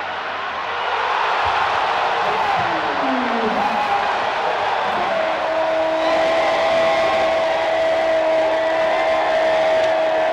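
A large stadium crowd erupts into a loud, sustained roar of cheering.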